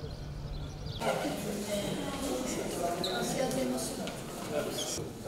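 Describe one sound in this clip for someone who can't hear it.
Footsteps of a group echo along a hallway.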